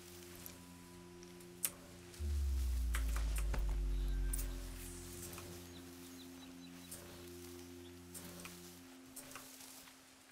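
Tall grass rustles as a character moves through it.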